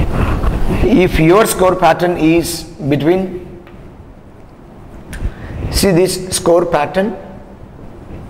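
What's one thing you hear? A man speaks calmly and clearly nearby, as if teaching.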